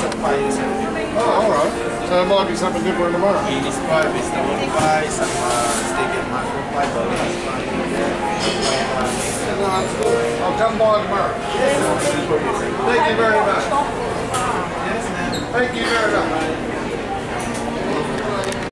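A crowd of adults chatters nearby in a busy, echoing room.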